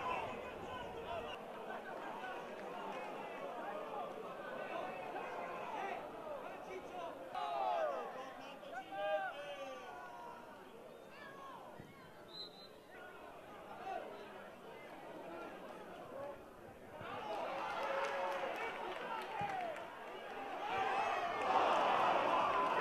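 A small crowd of spectators murmurs and shouts outdoors.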